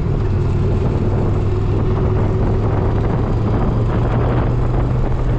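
Wind rushes loudly past an open car window.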